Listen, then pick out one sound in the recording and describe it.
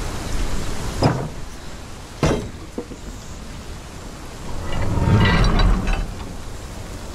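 A heavy wooden gate rattles and swings open with a thud.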